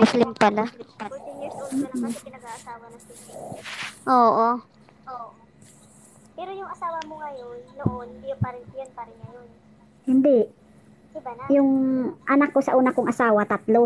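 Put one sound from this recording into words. Women talk and laugh over an online call.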